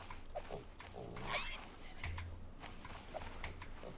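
A wooden club thumps against an animal.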